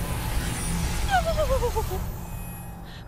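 A creature lets out a long, falling moan.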